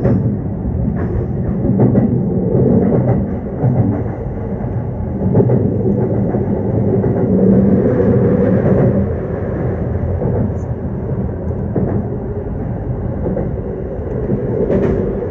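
Wheels clatter over rail joints and points.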